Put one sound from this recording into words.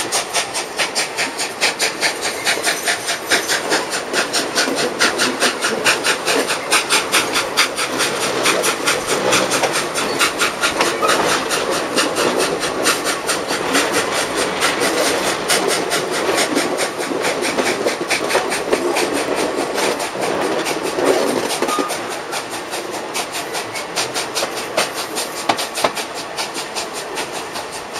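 Wind rushes past the moving train.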